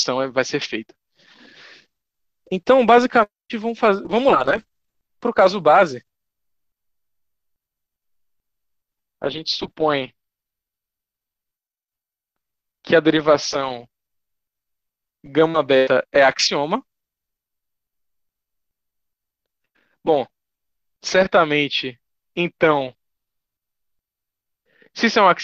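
A young man speaks calmly and haltingly over an online call, with long pauses.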